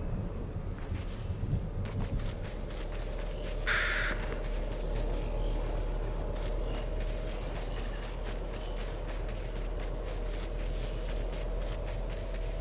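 A figure slides steadily over snow with a low rushing whoosh.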